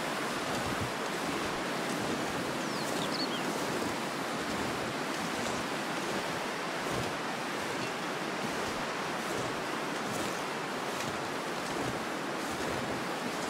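Wind blows steadily across open snow.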